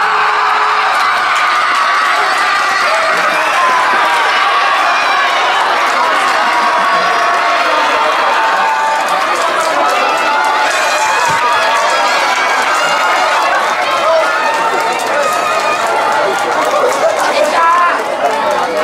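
A large group of young men and women chant and shout loudly together outdoors.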